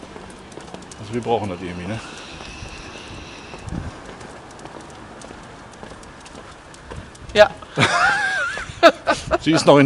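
A middle-aged man talks cheerfully close by.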